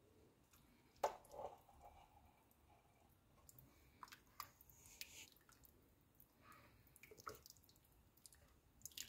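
A spoon scrapes and clinks against a pot while stirring.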